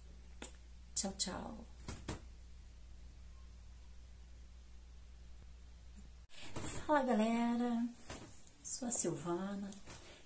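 A middle-aged woman talks close to a microphone, with animation.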